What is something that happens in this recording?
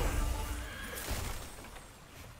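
A bright chime rings out with a loud swell.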